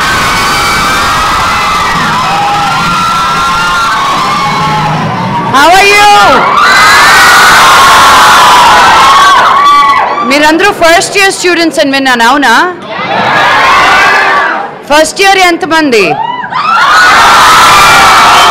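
A large crowd of young women and men screams and cheers excitedly, close by.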